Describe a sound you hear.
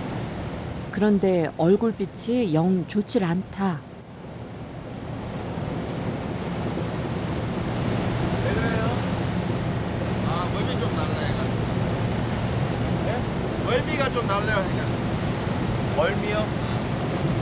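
A man speaks casually close by, outdoors in wind.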